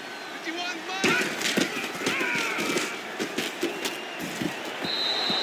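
Football players' pads thud and clatter as they collide.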